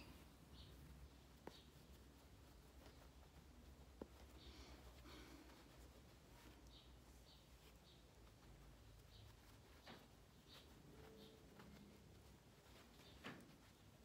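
Hands rustle and squeeze soft stuffing into fabric.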